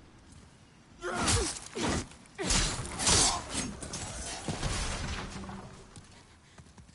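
Heavy sword blows crash and clang in a fight.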